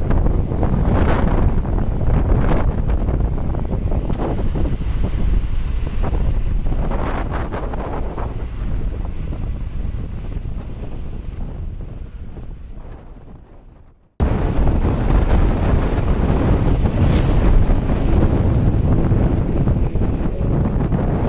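Wind rushes past a moving car.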